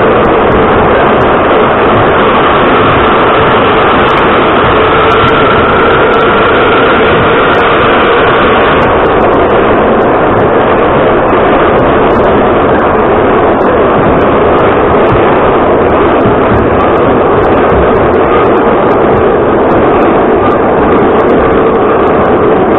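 Metal rattles and clatters as a subway car sways.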